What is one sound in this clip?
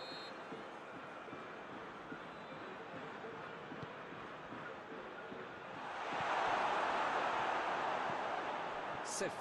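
A large crowd murmurs steadily, then swells into a loud roar.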